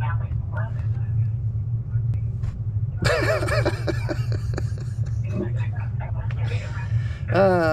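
A middle-aged man laughs close by.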